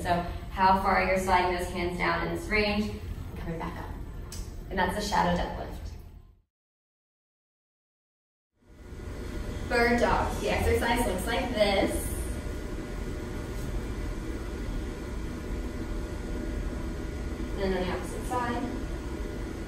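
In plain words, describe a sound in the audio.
A young woman speaks calmly to the listener.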